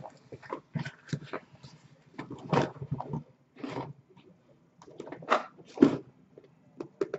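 Cardboard boxes scrape and thump as they are lifted and moved by hand.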